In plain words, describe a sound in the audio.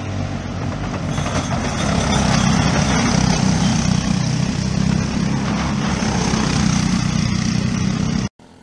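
Go-kart engines buzz as karts drive past.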